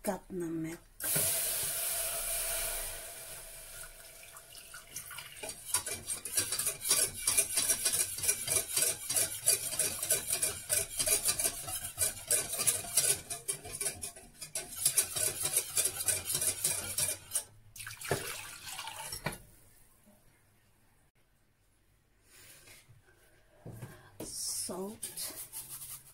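A wire whisk rattles and clinks rapidly against a metal pot.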